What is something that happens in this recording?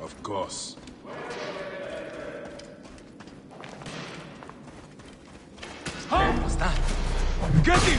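Footsteps run across sand.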